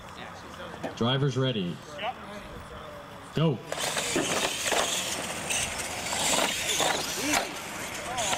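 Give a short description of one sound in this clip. Small electric motors whine and rev as toy trucks race.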